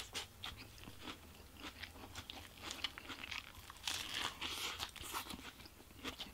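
A man chews food loudly and wetly close to a microphone.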